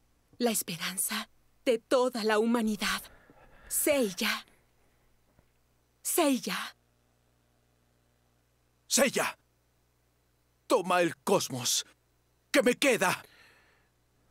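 A young man talks and exclaims with animation, close to a microphone, in short bursts.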